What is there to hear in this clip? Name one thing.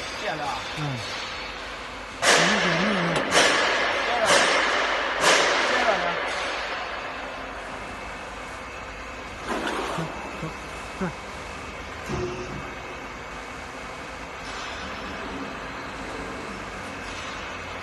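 A machine motor hums steadily.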